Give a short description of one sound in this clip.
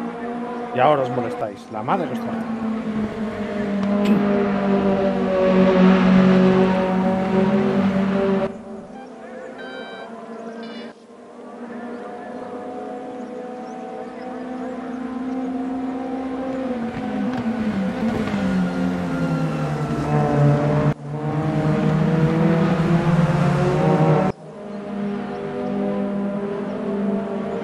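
Racing car engines roar and whine, rising and falling as the cars shift gears.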